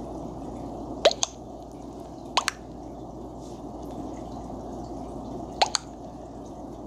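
A short chat notification blip sounds a few times.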